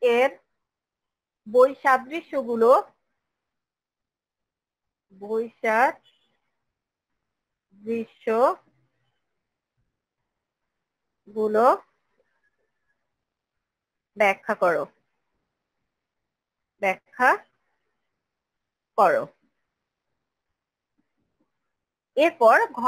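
A woman speaks slowly in short phrases over an online call, with pauses between them.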